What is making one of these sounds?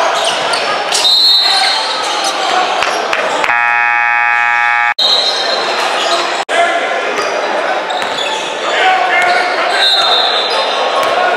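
A referee blows short, shrill whistle blasts.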